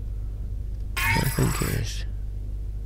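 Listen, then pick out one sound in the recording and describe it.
Soft electronic blips sound as a menu opens.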